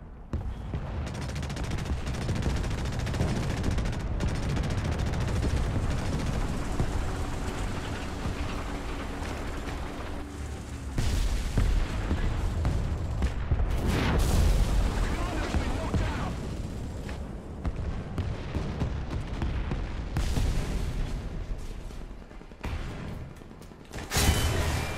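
A tank engine rumbles and roars as the tank drives.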